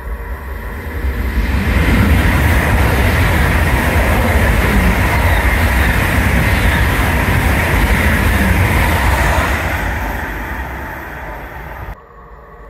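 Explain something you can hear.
A high-speed train roars past at speed with a loud rushing whoosh.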